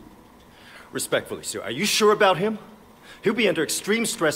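A younger man answers respectfully, with growing tension.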